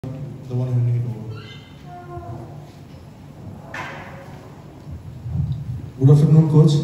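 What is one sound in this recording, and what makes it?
A middle-aged man speaks calmly into a microphone in a room with a slight echo.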